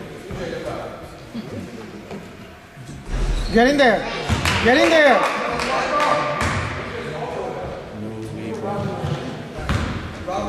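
An adult man shouts instructions from the sideline.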